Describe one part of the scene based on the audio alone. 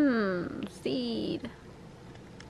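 A mourning dove coos with a falling tone.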